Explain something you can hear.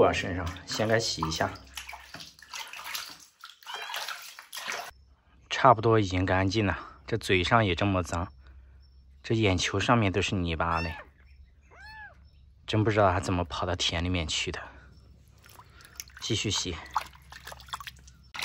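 Water splashes in a basin.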